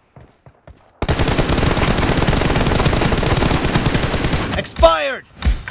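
Rapid automatic gunfire rattles loudly.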